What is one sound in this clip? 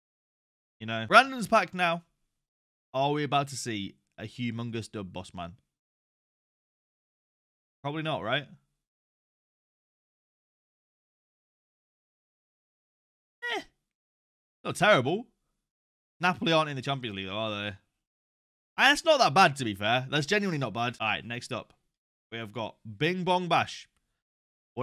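A young man talks with animation close to a microphone, in bursts with pauses.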